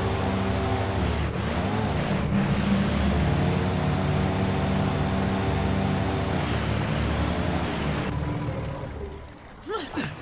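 A boat engine drones steadily over water.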